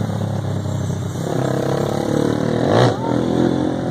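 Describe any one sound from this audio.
Another motorcycle engine revs nearby as it passes.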